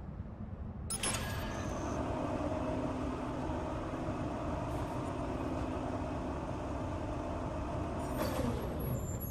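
A heavy crane motor hums steadily.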